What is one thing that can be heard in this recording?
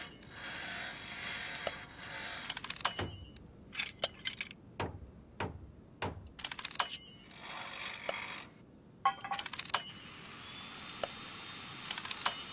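A rapid ticking sound runs as a repair bar fills and stops.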